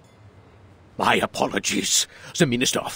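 A middle-aged man speaks calmly and politely, heard close up.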